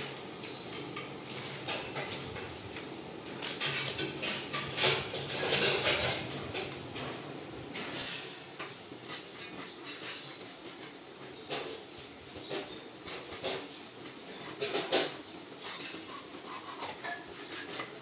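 A fish is scraped and sliced against a fixed blade with wet, crunchy strokes.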